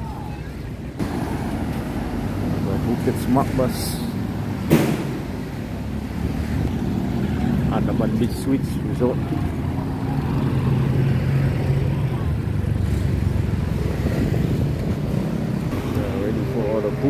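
Traffic rumbles past on a street.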